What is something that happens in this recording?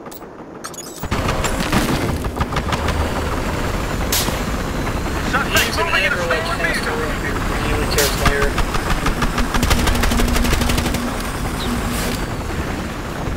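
A helicopter's rotor and engine roar loudly and steadily.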